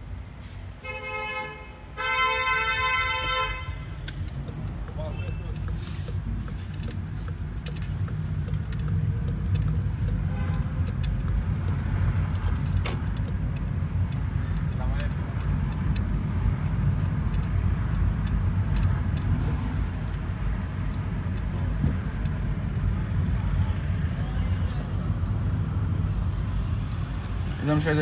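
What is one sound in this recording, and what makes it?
A car engine hums low and steady from inside the car as it drives along a street.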